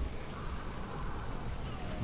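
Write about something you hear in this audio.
A flamethrower roars out a jet of fire.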